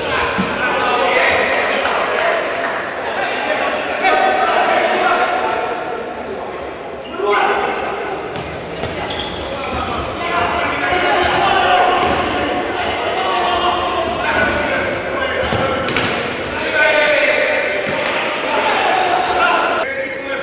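A futsal ball is kicked in an echoing indoor hall.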